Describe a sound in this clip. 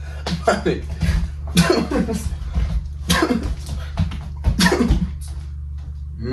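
A young man talks excitedly and loudly, close by.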